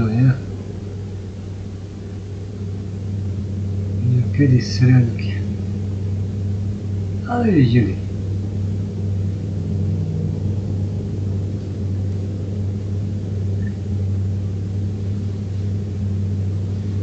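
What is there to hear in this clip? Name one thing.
Tyres roll and hum on a highway.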